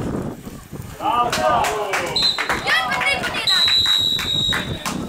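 Young players shout loudly to each other outdoors.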